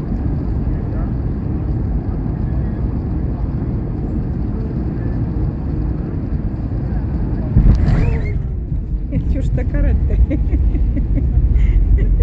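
A low, steady rumble of an airliner rolling along a runway fills the cabin.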